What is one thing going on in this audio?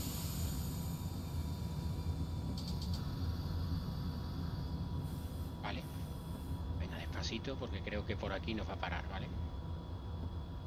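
A train engine rumbles low and steady.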